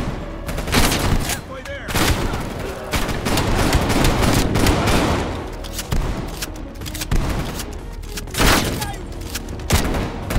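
A gun is reloaded with sharp metallic clicks.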